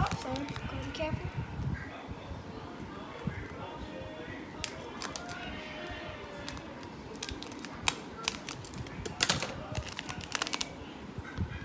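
Scissors snip through thin plastic.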